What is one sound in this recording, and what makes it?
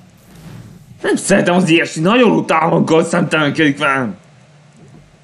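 A young man speaks with animation close to a microphone.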